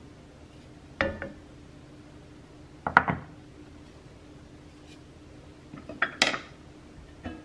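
A wooden spoon knocks against a metal pot.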